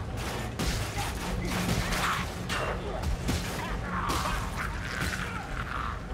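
Blades clash and strike hard in a close fight.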